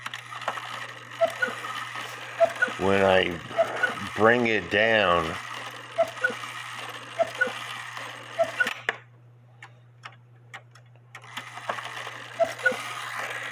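A clock mechanism ticks steadily up close.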